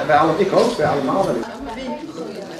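A young boy talks nearby.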